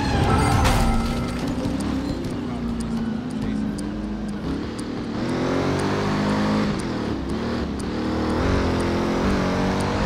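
A car engine roars and revs as it speeds up.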